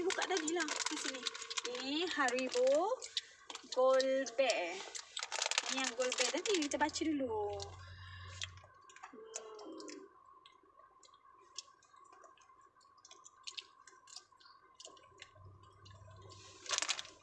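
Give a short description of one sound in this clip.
A plastic snack bag crinkles.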